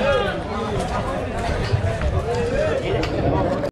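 A kick lands with a thud on a fighter's body.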